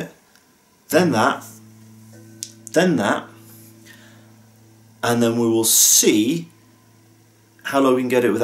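An electric guitar string is plucked and rings on.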